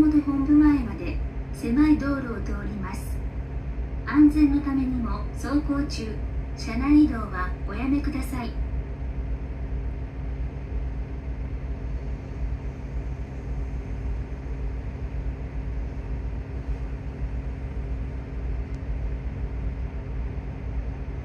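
A bus engine hums steadily with a low rumble.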